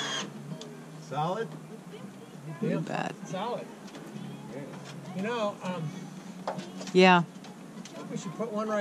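Two men talk to each other outdoors at a distance.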